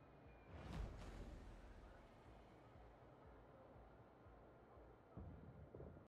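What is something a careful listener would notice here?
Sea water laps gently against a ship's hull.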